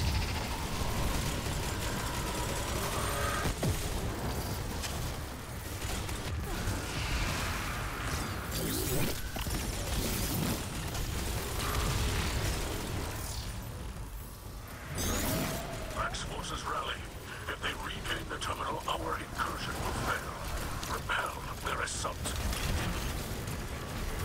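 Rapid gunfire rattles and booms throughout.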